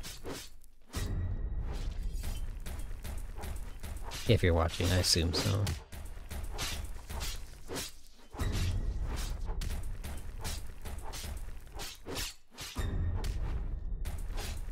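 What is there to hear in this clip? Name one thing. A sword swings and strikes a creature in a game.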